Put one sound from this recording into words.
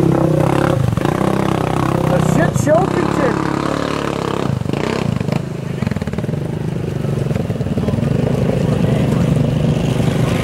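Thick mud splashes and churns under spinning tyres.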